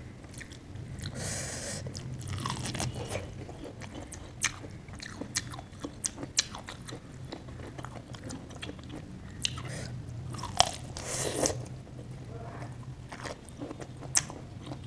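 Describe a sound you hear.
A woman chews and slurps food close to a microphone.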